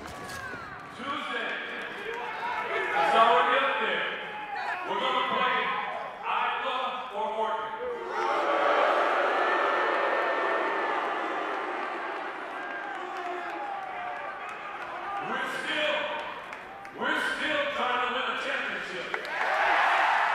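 A man speaks calmly into a microphone over loudspeakers in a large echoing arena.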